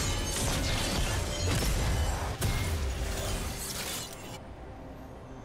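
Video game spell effects whoosh and crackle in quick bursts.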